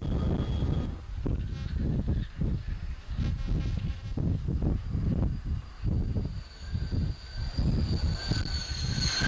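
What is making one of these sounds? A jet engine roars loudly as a plane launches.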